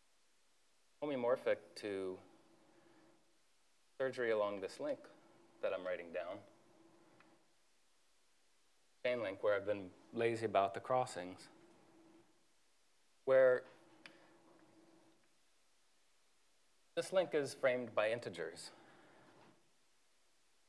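A man speaks calmly in an echoing room, with pauses.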